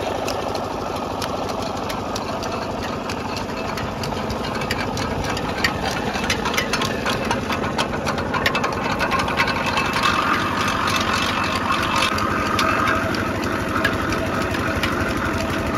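A cane crushing mill clanks and grinds steadily.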